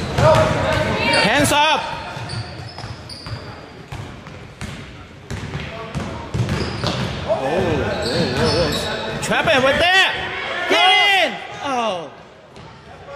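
Sneakers squeak sharply on a hard court floor in an echoing gym.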